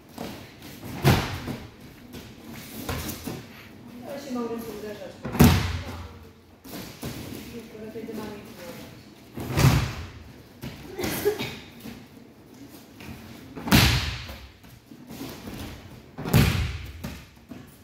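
Bodies thud heavily onto a padded mat again and again, in a hall with some echo.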